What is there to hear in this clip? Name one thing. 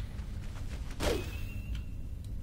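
A magic spell bursts with a fizzing crackle.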